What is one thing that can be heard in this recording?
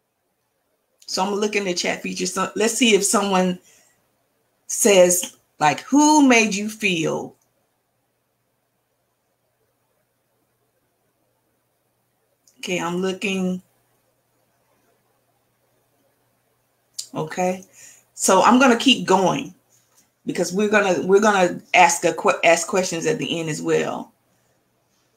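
A woman speaks calmly through an online call microphone, pausing between phrases.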